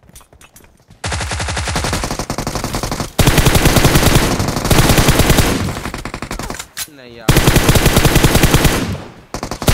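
Rapid bursts of automatic gunfire rattle loudly.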